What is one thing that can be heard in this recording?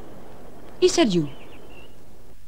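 A young woman cries out briefly.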